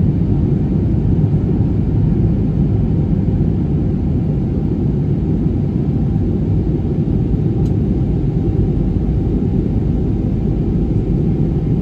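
Jet engines roar steadily from inside an airliner cabin in flight.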